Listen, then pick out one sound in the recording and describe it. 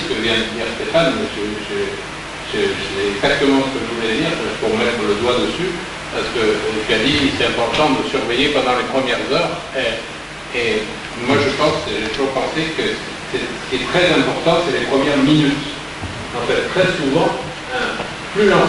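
A man speaks steadily into a microphone, heard through loudspeakers in a large echoing hall.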